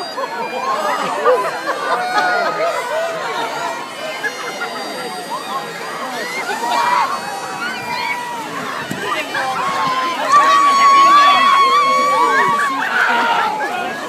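A large crowd shouts, cheers and screams outdoors.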